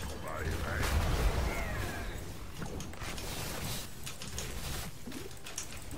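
Game spell effects zap and crackle in a busy battle.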